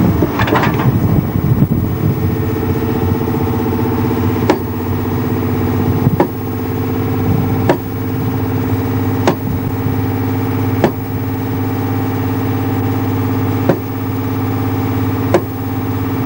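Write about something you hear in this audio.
An engine idles steadily nearby.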